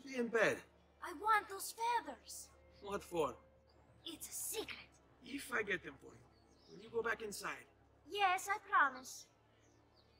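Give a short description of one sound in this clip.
A child answers in a light, eager voice.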